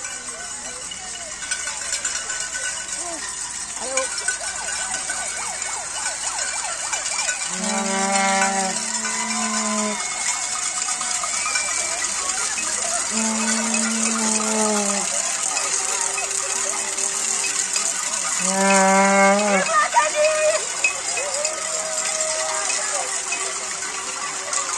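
A crowd of people chatters and calls out as a parade marches along a street outdoors.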